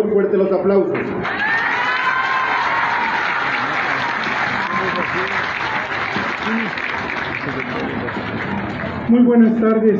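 A crowd chatters and cheers in the background.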